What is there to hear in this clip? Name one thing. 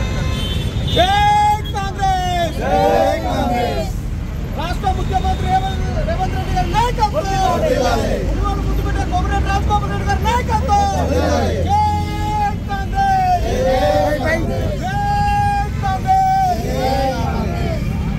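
A crowd of men chants slogans loudly in unison.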